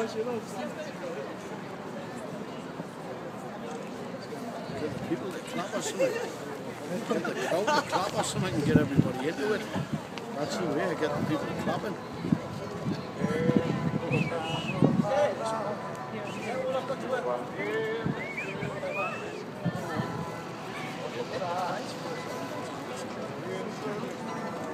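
A man talks nearby outdoors.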